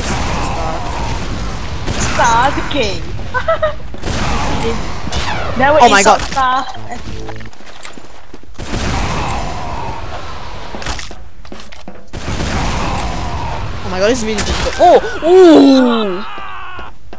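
A shotgun fires with loud bangs.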